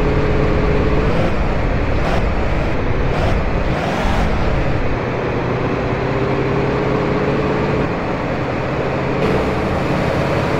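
Tyres skid and screech on the road.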